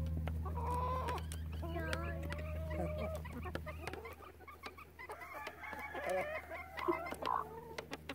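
Hens cluck and croon softly close by.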